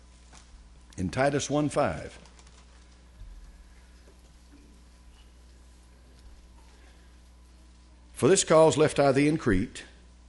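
An elderly man speaks slowly and deliberately through a microphone in a reverberant hall, with long pauses.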